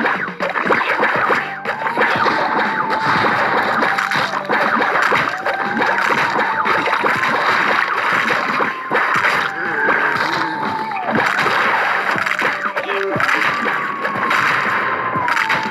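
Rapid cartoon popping shots and splats play throughout.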